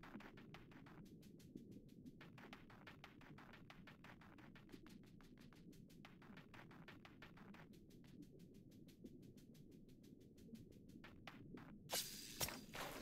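A fiery trail crackles rapidly in a video game.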